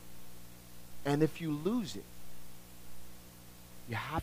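A man speaks with animation.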